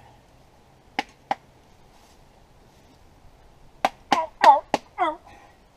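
A metal pot clanks sharply against metal a few times.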